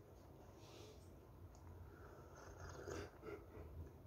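A young woman sips from a mug.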